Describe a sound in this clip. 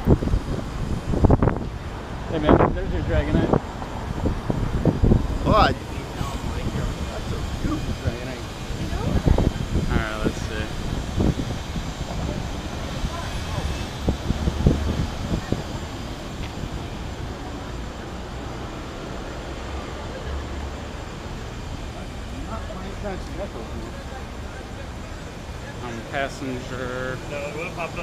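City traffic rumbles outdoors.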